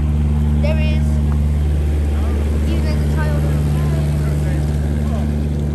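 Water churns and splashes against a boat's hull.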